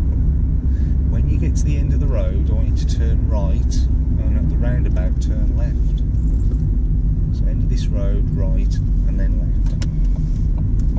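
A woman talks calmly close to a microphone.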